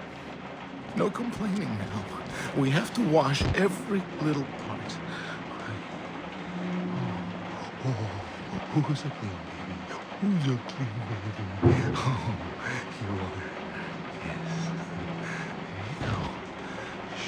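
A man speaks softly and soothingly, close by.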